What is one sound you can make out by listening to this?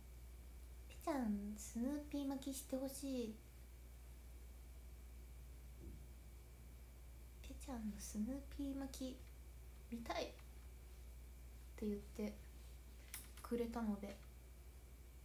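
A young woman speaks casually and close to a microphone, in short bursts with pauses.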